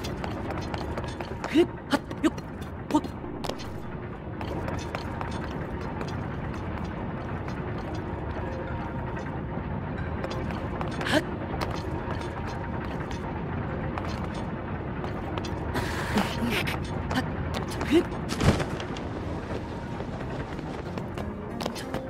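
A game character climbs a ladder with soft thuds.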